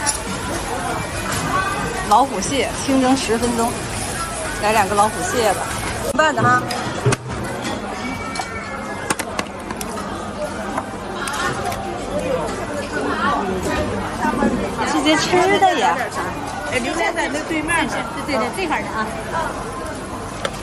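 Men and women chatter nearby, with many voices overlapping.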